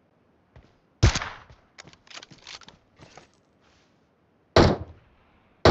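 A sniper rifle fires loud single shots that echo away.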